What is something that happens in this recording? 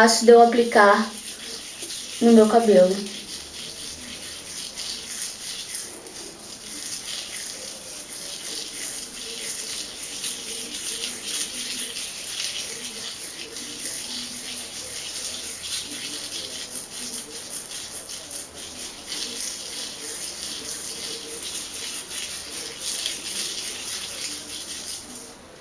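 A brush rasps through thick wet hair.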